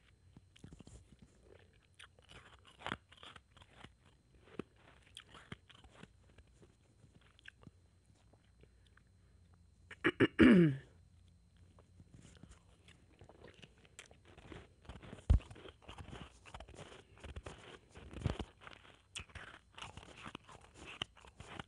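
A young woman crunches ice in her mouth, close by.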